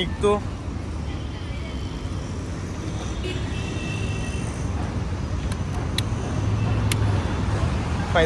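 A motorcycle engine idles with a low steady rumble.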